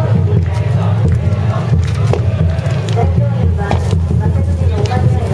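A crowd of people murmurs and talks nearby.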